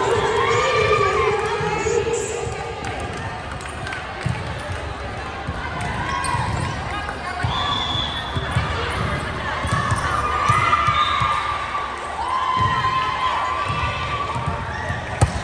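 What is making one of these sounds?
Girls shout and call out in a large echoing hall.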